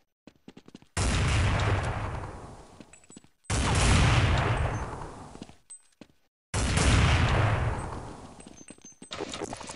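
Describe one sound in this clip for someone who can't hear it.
A rifle fires loud booming shots, each echoing away.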